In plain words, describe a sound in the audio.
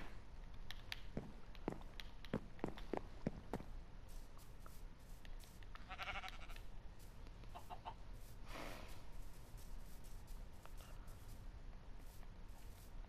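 Footsteps tap along steadily.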